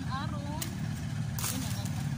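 A blade chops into a plant stem.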